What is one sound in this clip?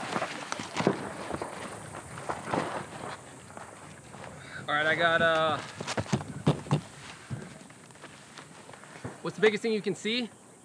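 Metal gear clanks and knocks as it is set down on the ground.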